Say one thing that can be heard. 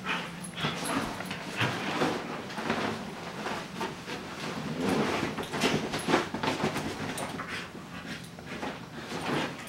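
A woman talks softly and playfully up close.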